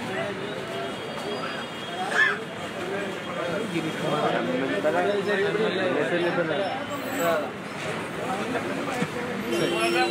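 Several men talk with animation nearby in a crowded room.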